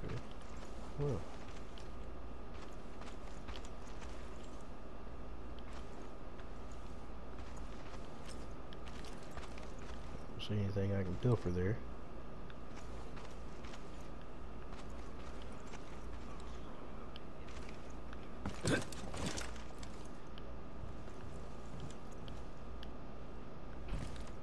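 Footsteps crunch on sand at a walking pace.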